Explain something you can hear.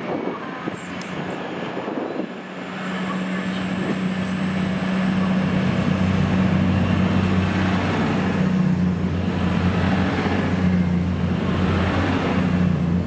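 A train's motors whine high and steadily.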